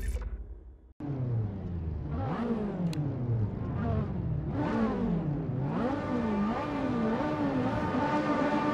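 A racing car engine revs and shifts gears as it speeds along a track.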